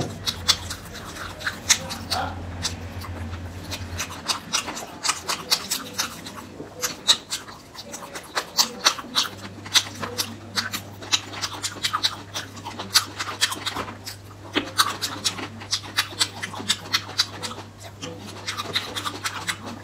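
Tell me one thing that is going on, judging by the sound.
A fork clicks and taps against a hard candy coating.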